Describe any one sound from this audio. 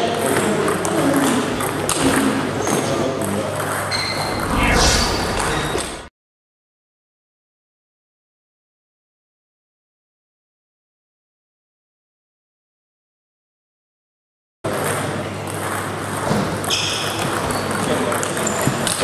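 A table tennis ball clicks back and forth off paddles and a table in an echoing hall.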